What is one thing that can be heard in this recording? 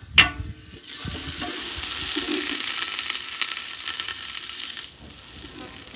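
Butter sizzles and crackles in a hot pot.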